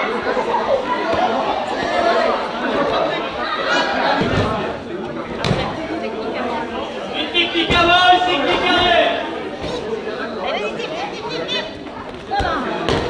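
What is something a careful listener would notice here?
Many people talk and call out in a large echoing hall.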